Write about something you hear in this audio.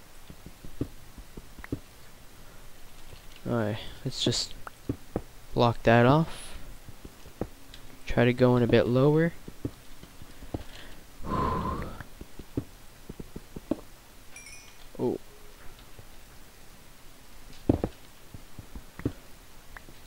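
A pickaxe chips repeatedly at stone with short knocks.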